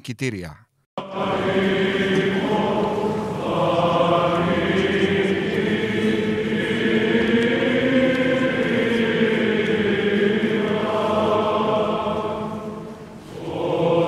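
A large choir sings in a big echoing hall.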